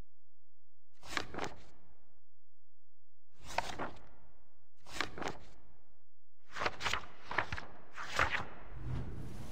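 Book pages turn with soft papery swishes.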